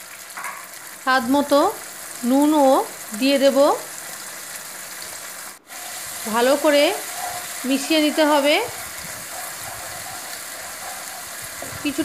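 Sauce sizzles and bubbles in a hot pan.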